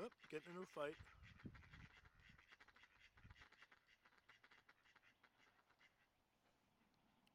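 Ducks rustle and peck in the grass.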